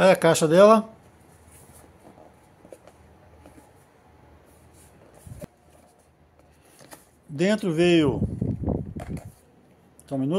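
A small cardboard box is handled and shifted on a soft cloth.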